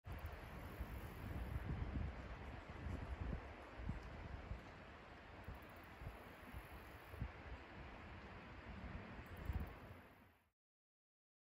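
Wind gusts outdoors.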